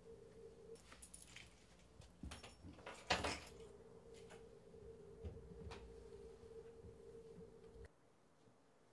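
Small objects clatter and knock as they are handled.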